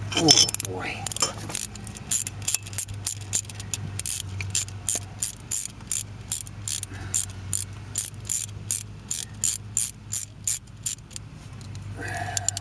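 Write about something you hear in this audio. An engine ticks with rapid, even clicks.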